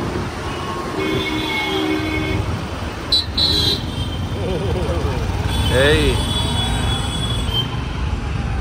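Vehicle horns honk now and then.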